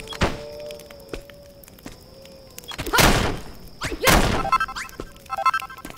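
Blocks are struck and break with crunching thuds.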